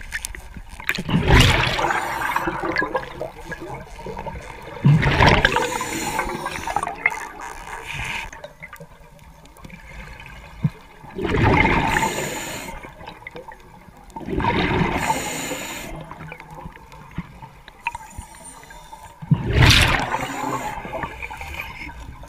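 Bubbles from a diver's regulator rush and gurgle loudly in bursts every few seconds, heard close underwater.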